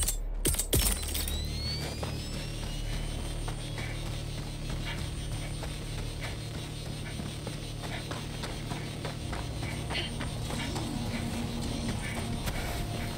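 Heavy footsteps crunch over rocky ground at a run.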